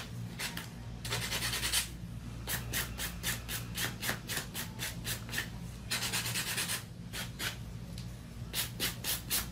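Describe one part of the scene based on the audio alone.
A stiff brush scrubs rapidly against coarse fabric.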